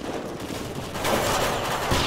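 Gunfire crackles in short bursts.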